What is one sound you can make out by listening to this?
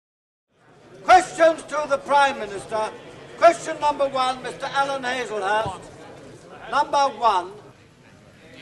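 A man calls out loudly in a large echoing hall.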